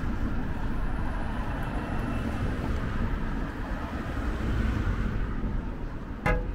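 Car traffic rumbles past nearby.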